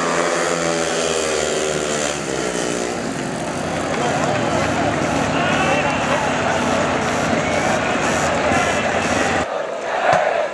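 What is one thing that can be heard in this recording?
Motorcycle engines roar loudly as bikes race past.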